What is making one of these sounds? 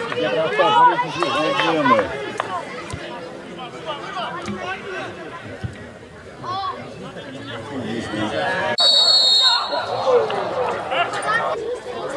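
Male footballers shout to each other across an open pitch.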